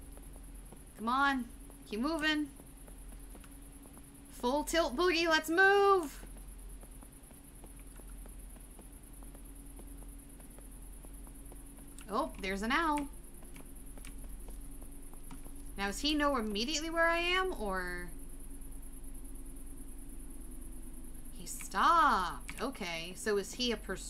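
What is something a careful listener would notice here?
A young woman talks in short bursts into a close microphone.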